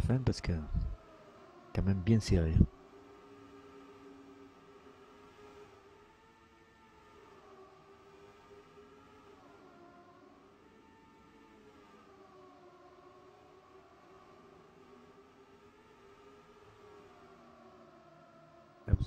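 A racing car engine drones steadily, its pitch rising and falling as it speeds up and slows down.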